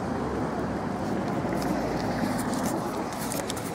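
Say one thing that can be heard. Clothing rustles against the microphone.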